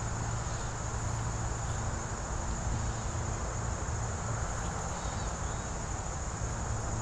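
Wind blows steadily outdoors and rustles the leaves of trees.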